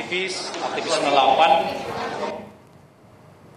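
A middle-aged man speaks calmly into microphones up close.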